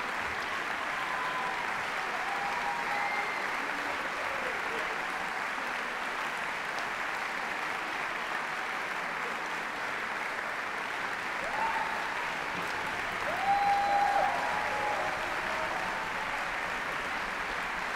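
A large orchestra plays in an echoing hall.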